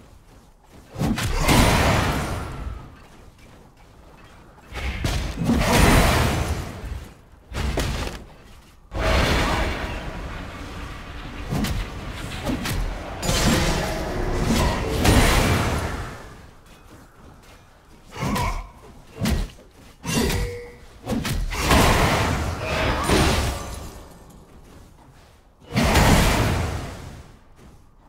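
Magic spells whoosh and crackle in bursts during a fight.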